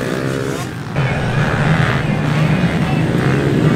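Dirt bike engines buzz as riders race over a dirt track.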